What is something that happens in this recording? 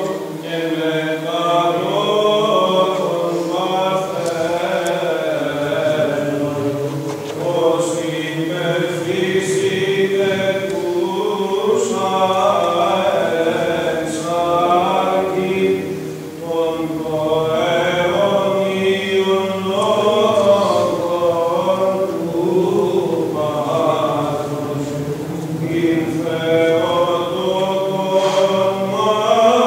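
A choir of men chants slowly in unison, echoing in a large hall.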